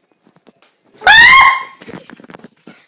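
A young girl squeals loudly close by.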